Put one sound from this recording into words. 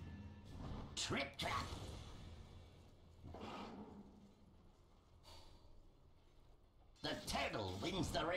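Magic spells whoosh and crackle in bursts during a fight.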